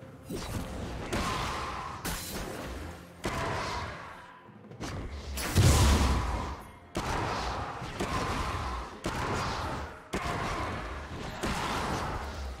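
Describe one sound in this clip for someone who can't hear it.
Magic spells burst and crackle in a fantasy battle.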